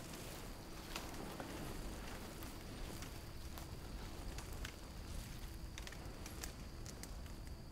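Footsteps crunch through dry brush and twigs.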